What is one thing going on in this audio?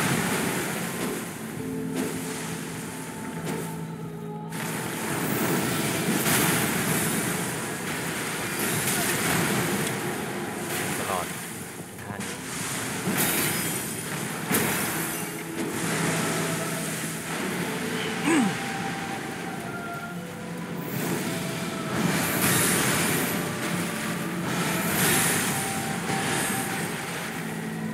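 Magic blasts crackle and burst with a roar.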